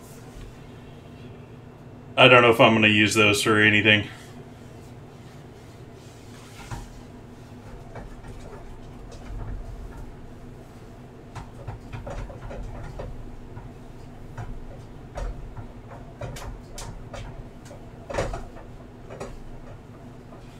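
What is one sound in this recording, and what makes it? A whisk scrapes and taps against a metal pan.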